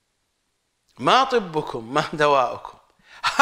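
An older man speaks with animation into a close microphone.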